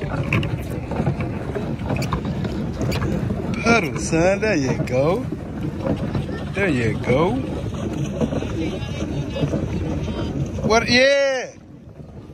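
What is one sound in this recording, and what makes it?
Water churns and splashes under a pedal boat.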